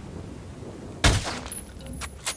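A suppressed rifle fires a single sharp shot.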